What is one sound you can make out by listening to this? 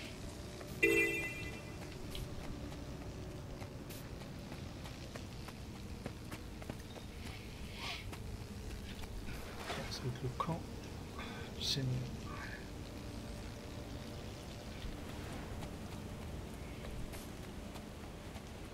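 Footsteps patter softly on grass.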